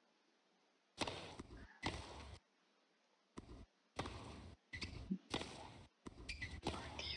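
A tennis ball is struck back and forth with rackets.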